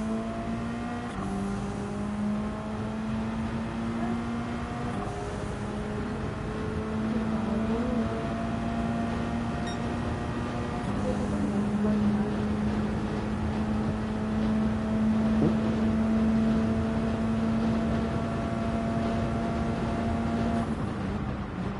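A racing car engine roars at high revs, climbing through the gears.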